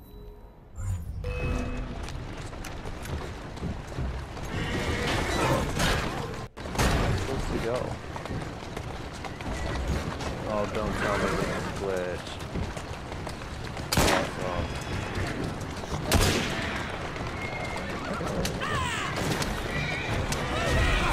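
Carriage wheels clatter and horse hooves clop on cobbles.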